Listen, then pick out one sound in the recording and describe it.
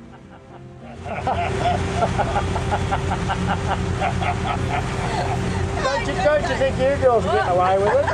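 A boat motor drones steadily.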